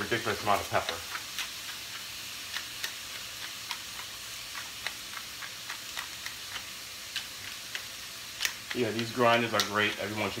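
A pepper grinder crunches.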